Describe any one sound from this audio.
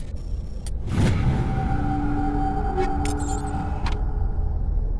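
A bright chime rings out and fades.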